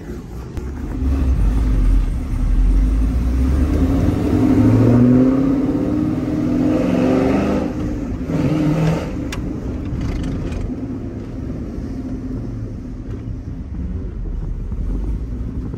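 A car engine rumbles deeply and revs up and down as the car drives.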